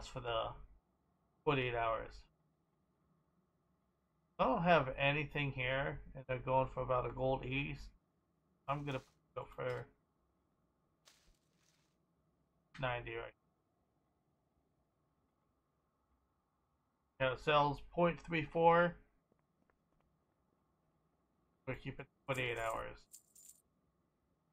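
A young man talks calmly and casually into a close microphone, in short bursts with pauses.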